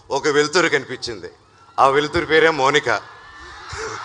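A young man speaks warmly into a microphone over loudspeakers.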